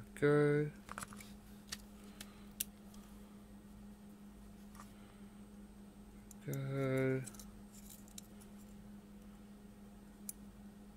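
A small circuit board taps and clicks lightly as hands handle it.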